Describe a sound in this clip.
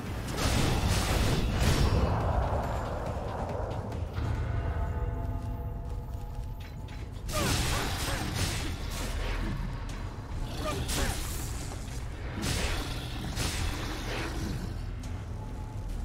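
Heavy blades slash and strike with sharp, ringing impacts.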